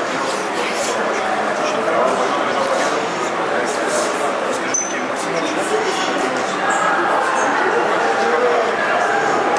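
A young man answers quietly and close by.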